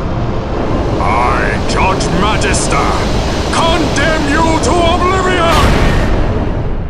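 An elderly man shouts fiercely.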